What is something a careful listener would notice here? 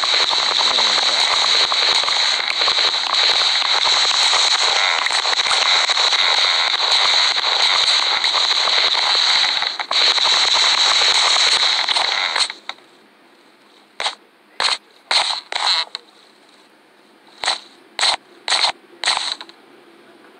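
Wooden blocks knock and crack as they are chopped apart.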